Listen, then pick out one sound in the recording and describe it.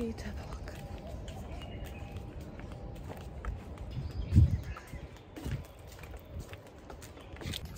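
Footsteps thud softly as a young woman walks outdoors.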